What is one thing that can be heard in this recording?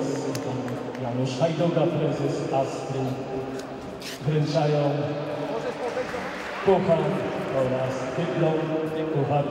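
A man announces loudly over a loudspeaker in a large echoing hall.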